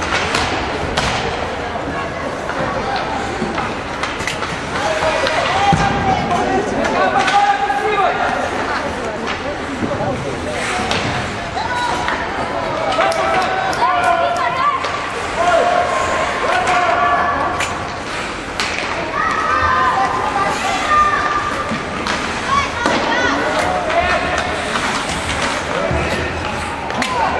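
Young players shout to each other across an echoing rink.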